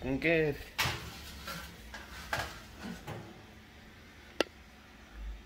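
A baking dish clatters onto a rack.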